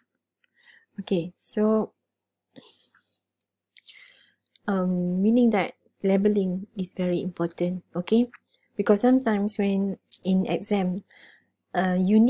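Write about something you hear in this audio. A woman speaks calmly, as if teaching, heard through a microphone.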